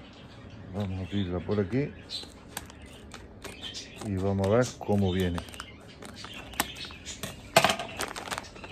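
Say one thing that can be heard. Scissors snip through a plastic packet.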